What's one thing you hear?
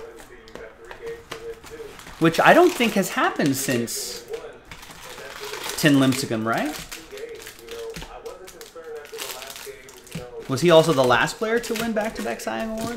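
Cardboard packs rustle and scrape as they are pulled from a box.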